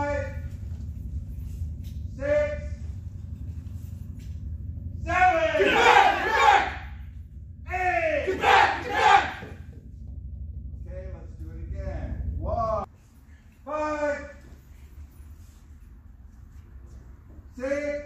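A man loudly calls out commands in an echoing hall.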